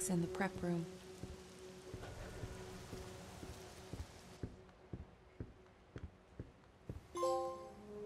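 Footsteps tread slowly across a hard floor indoors.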